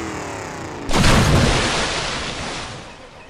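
A truck splashes heavily into water.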